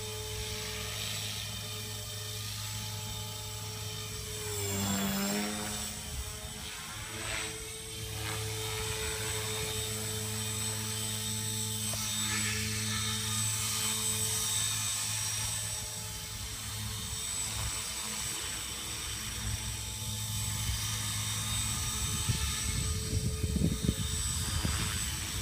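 A model helicopter's rotor and motor whine steadily, rising and falling in pitch as it flies.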